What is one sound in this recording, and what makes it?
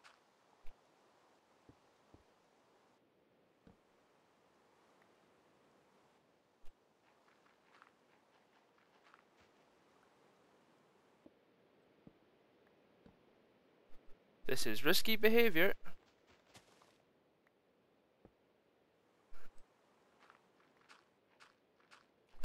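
Blocks of dirt and stone crunch as they are dug out in a game, with short scraping knocks.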